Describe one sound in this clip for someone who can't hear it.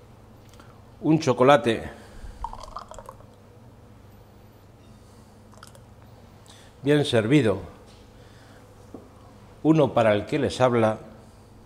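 A man speaks calmly in short phrases close by.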